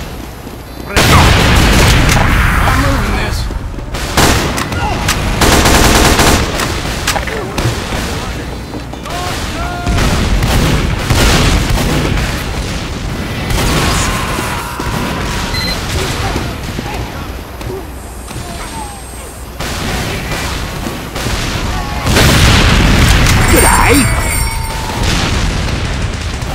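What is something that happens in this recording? Gunshots crack and boom loudly.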